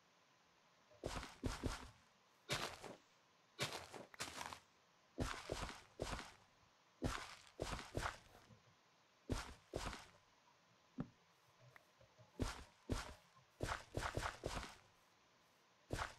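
A hoe digs into soil with short crunching scrapes.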